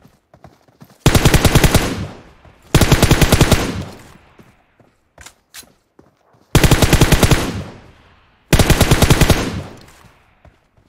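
An automatic rifle fires rapid bursts.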